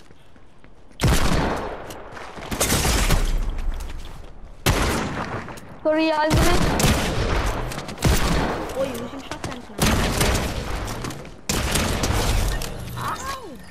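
Gunshots fire in loud, quick bursts.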